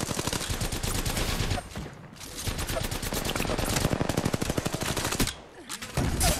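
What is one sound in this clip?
An automatic gun fires in rapid bursts, close by.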